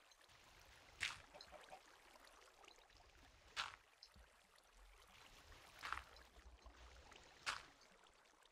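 Sand blocks crunch as they are broken in a video game.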